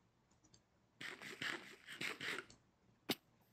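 A character munches and crunches food.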